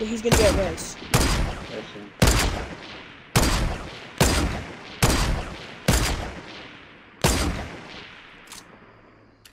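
Loud rifle shots ring out one after another, each with a long echoing tail.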